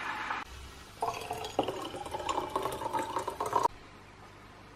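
Hot water pours from a kettle into a bottle.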